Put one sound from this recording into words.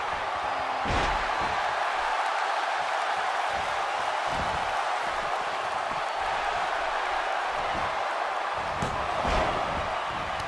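Wrestlers' bodies thud onto the ring mat.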